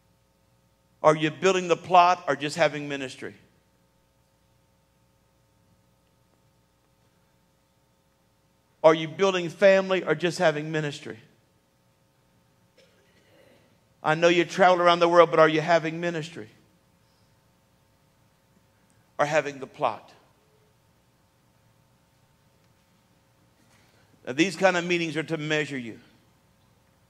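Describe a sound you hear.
A middle-aged man speaks with animation through a microphone in bursts, with pauses between.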